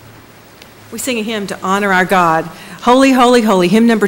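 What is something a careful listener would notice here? A woman sings solo through a microphone with vibrato.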